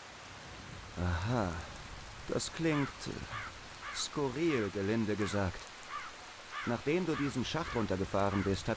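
A man speaks calmly in a low voice.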